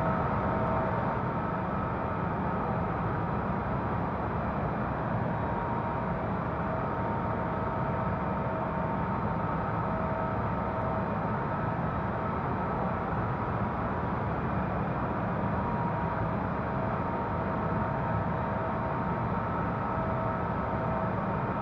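Jet engines roar steadily in a cockpit.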